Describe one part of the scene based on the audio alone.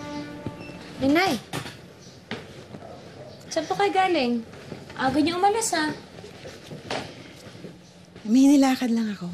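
A middle-aged woman talks back close by.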